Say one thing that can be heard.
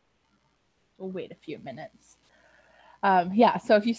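A young woman speaks with animation over an online call.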